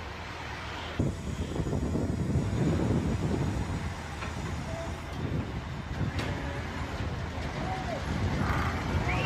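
A loader bucket scrapes and pushes loose dirt into a pit.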